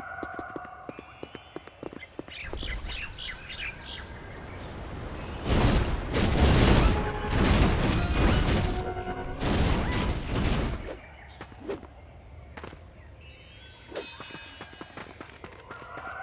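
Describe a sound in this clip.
A bright chime rings as a coin is picked up.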